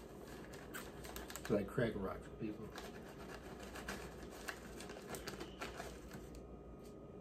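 A paper bag rustles and crinkles close by.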